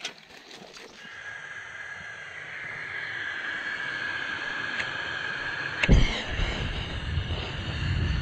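Gas hisses steadily from a camping stove.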